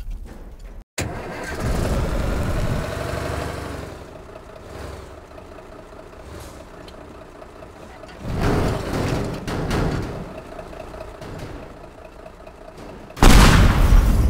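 A bus engine hums steadily as the bus drives.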